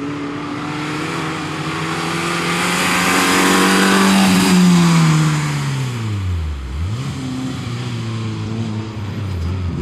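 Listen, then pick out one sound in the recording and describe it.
A small car engine revs hard as the car approaches, passes close by and drives away.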